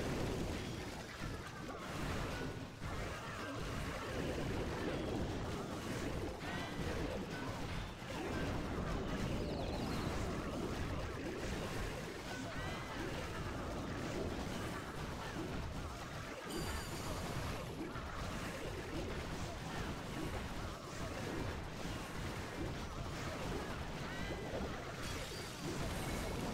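Video game battle sounds of clashing troops and crumbling buildings play.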